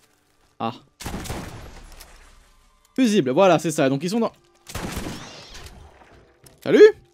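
Gunfire bursts out loudly.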